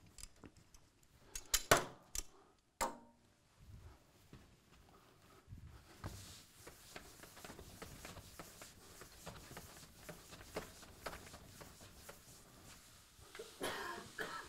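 Chalk scrapes and taps on a chalkboard.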